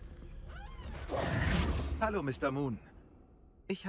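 A young man speaks calmly and cheerfully.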